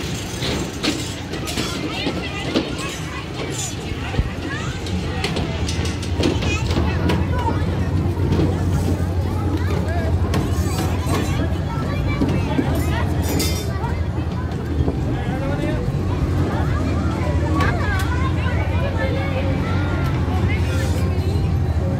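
Children chatter and call out outdoors in a busy crowd.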